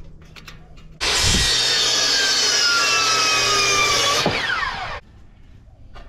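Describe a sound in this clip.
A power saw whines loudly as it cuts through wood.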